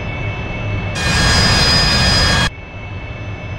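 A jet roars loudly as it flies past.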